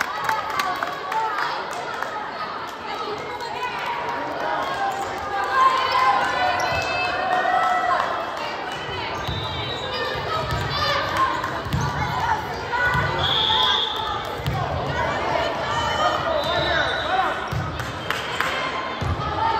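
Girls and young women call out to each other and cheer in a large echoing gym.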